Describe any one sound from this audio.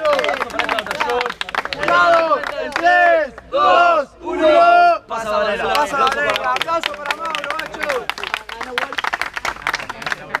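A group of young men chants and shouts loudly outdoors.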